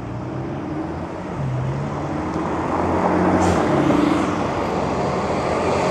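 A car drives past on a quiet street.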